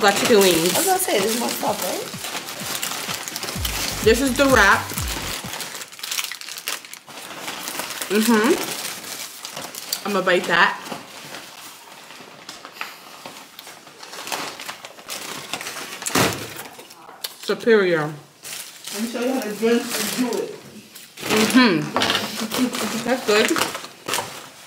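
Paper wrappers rustle and crinkle.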